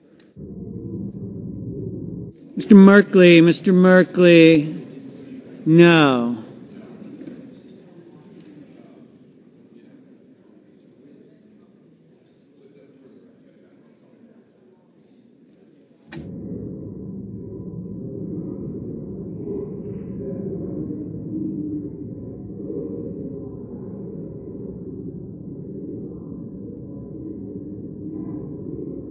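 Many men and women murmur and chat quietly in a large hall.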